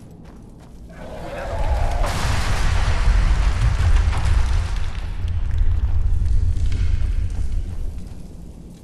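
Rocks crash down in a loud, rumbling cave-in.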